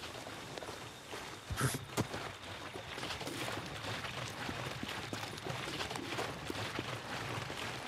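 Footsteps scuff on gravel.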